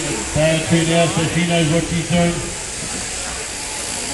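Electric sheep shears buzz steadily.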